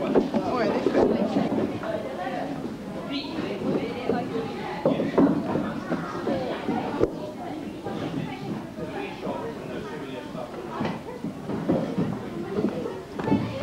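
A crowd of young people chatters nearby.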